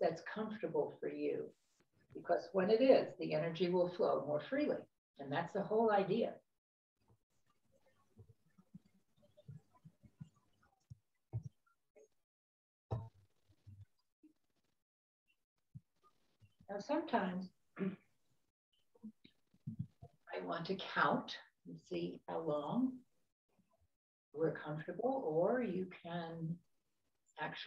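An elderly woman speaks calmly and slowly, close to a microphone, with long pauses.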